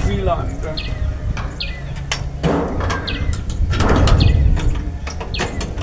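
A wire cage door rattles and clicks.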